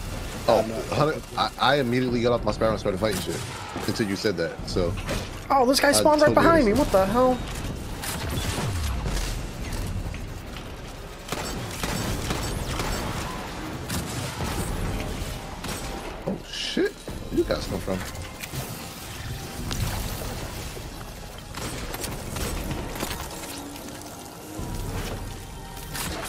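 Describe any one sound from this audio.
Gunfire crackles in short bursts from a video game.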